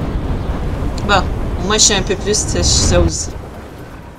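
A young woman speaks and laughs with animation, close to a microphone.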